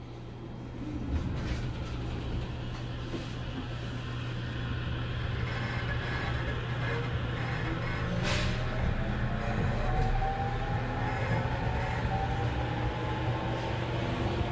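A train's motor hums and whines, rising in pitch as the train pulls away.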